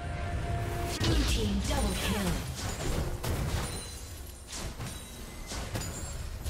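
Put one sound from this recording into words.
Video game characters' weapons clash and strike in quick bursts.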